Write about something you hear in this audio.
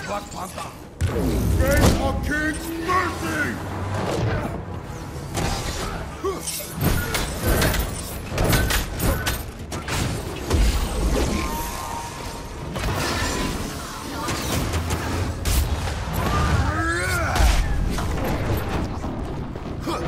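Heavy punches and blade strikes thud and clang.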